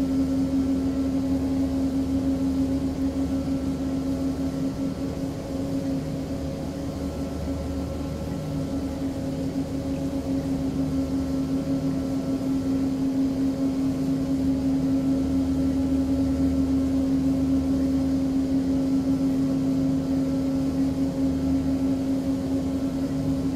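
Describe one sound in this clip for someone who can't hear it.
A propeller aircraft's engines drone steadily.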